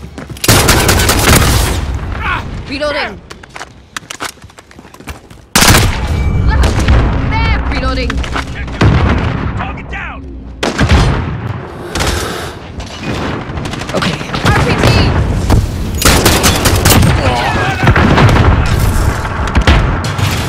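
Rapid gunfire bursts loudly and echoes.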